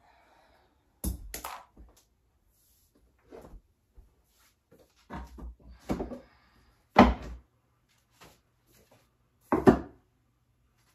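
Plastic toys clatter and thump as they are tossed into a bin.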